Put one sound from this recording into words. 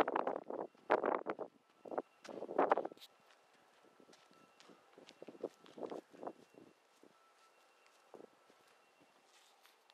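Footsteps scuff on concrete.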